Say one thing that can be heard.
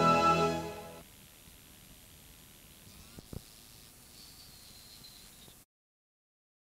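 Tape static hisses faintly.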